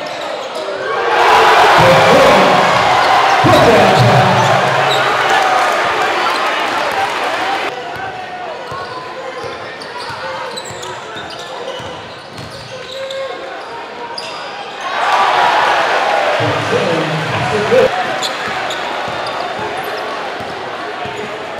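A large crowd cheers and roars loudly in an echoing gym.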